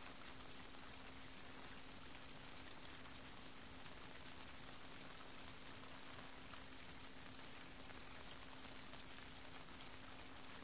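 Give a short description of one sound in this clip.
Water laps gently against rocks at the shore.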